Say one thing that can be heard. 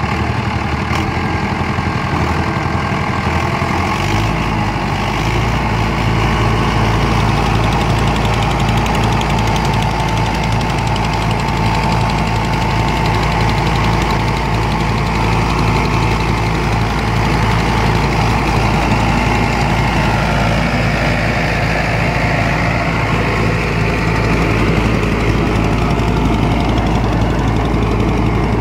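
A rotary tiller churns through soil.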